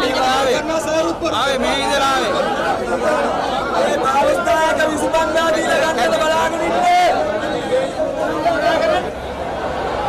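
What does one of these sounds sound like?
A middle-aged man shouts angrily close by.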